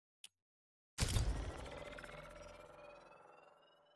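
A game menu plays a short whooshing chime.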